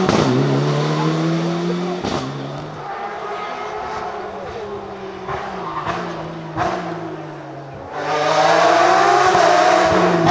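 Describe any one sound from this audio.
A rally car engine roars loudly as the car speeds past, shifting gears.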